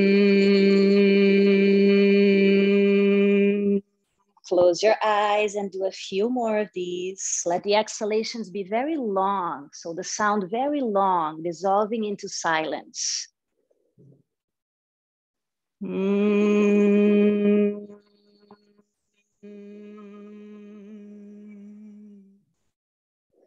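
A woman hums a long steady note through a microphone.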